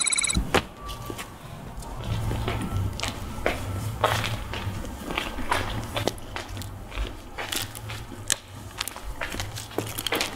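Footsteps crunch on snow.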